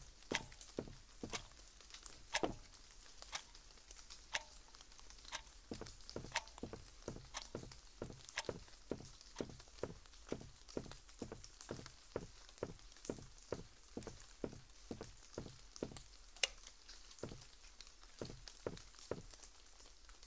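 Footsteps thud at a steady walking pace on a hard floor.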